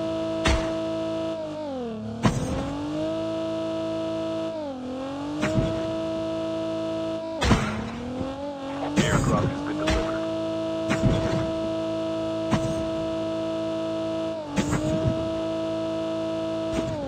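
A car's suspension thuds and bumps over rough ground.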